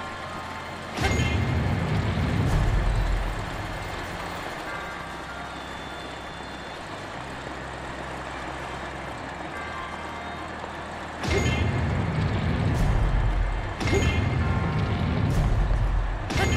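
A mechanical sled roars and rumbles past close by.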